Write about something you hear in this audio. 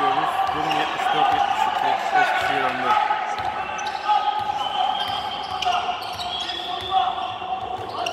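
A basketball bounces on a wooden floor as a player dribbles.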